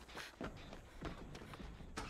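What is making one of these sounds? Footsteps thump across creaking wooden boards.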